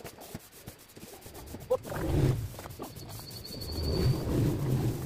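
Thin bamboo strips click and rustle as they are woven by hand.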